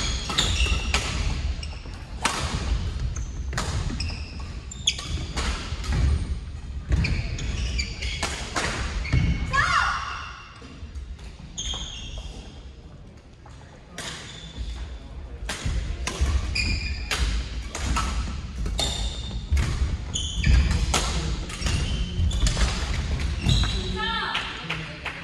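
Shoes squeak sharply on a wooden court floor.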